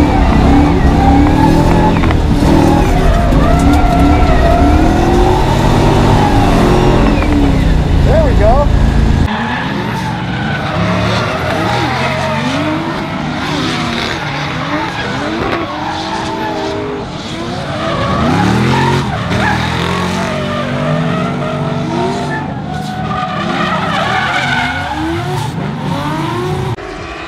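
Tyres squeal as a car drifts.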